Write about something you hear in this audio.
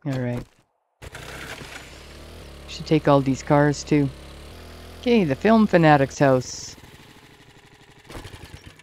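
A small motorbike engine hums steadily as the bike rides along.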